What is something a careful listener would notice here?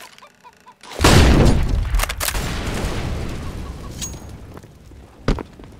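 A smoke grenade hisses loudly and slowly fades.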